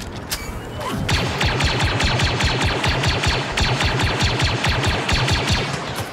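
A blaster rifle fires rapid bursts of laser shots.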